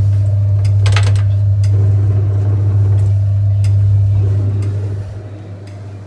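A machine hums loudly and steadily, then quietens.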